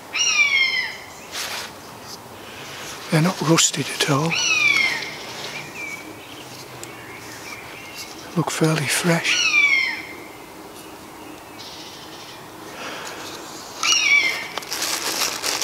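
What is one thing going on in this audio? A man blows a hand-held bird call, making quick falling chirps.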